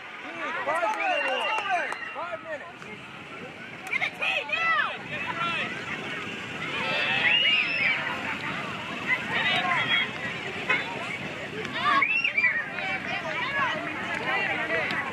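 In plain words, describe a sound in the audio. Young players and spectators call out faintly across an open outdoor field.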